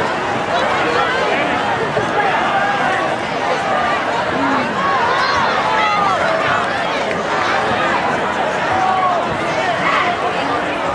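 A large crowd chatters and cheers outdoors in an open stadium.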